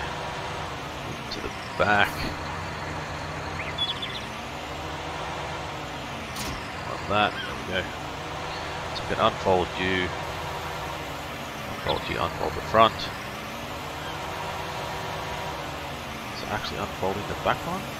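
A tractor engine hums steadily while driving.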